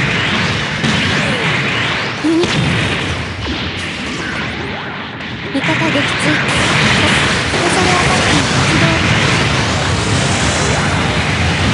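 Energy beams fire with sharp, crackling blasts.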